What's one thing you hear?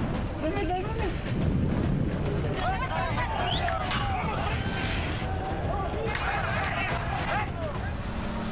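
A crowd of people shouts and clamors outdoors.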